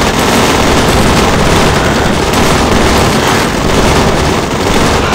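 Gunfire rattles rapidly and steadily.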